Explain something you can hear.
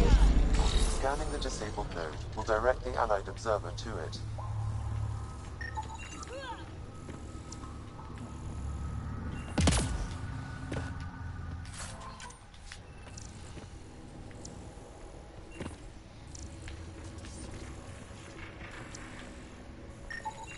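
An electronic scanner hums steadily.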